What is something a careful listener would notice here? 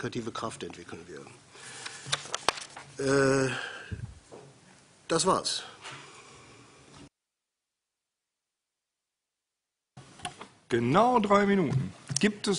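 A man speaks calmly through a microphone.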